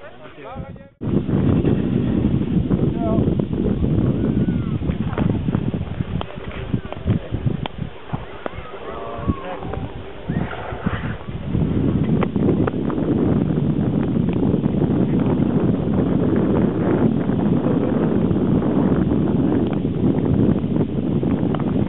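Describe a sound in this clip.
Wind blows hard outdoors, rumbling loudly.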